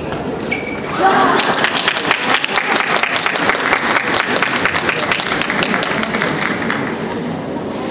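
Spectators applaud in a large echoing hall.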